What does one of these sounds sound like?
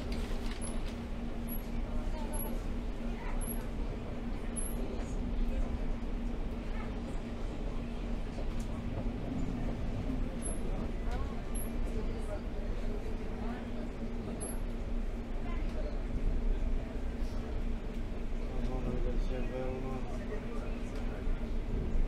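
A subway train rumbles and rattles along the tracks.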